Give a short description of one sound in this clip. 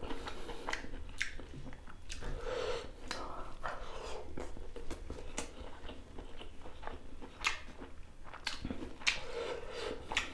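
Fingers squish and rustle through rice and food.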